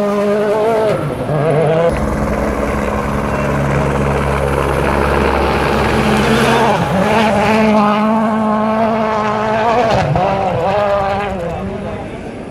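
A rally car engine revs hard on a gravel stage.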